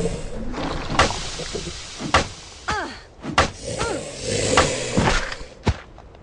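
Heavy blows thud as a survivor strikes a zombie.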